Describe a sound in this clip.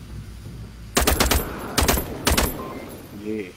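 Gunshots ring out in short loud bursts.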